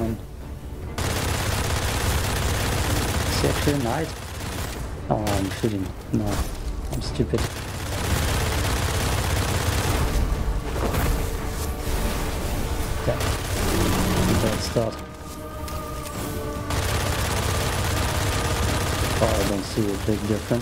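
Heavy gunfire rattles rapidly.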